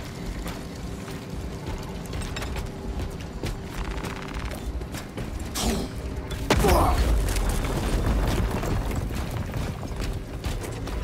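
Heavy armoured footsteps thud on rocky ground.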